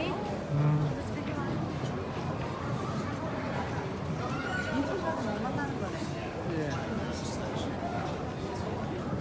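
Many people chatter softly nearby, echoing in a large room.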